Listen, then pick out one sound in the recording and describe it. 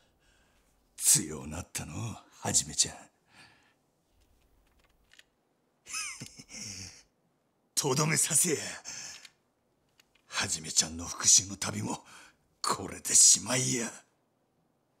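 An older man speaks in a low, taunting voice.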